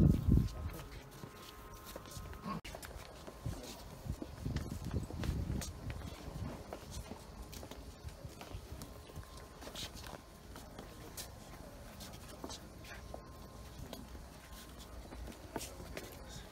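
Men murmur quietly nearby outdoors.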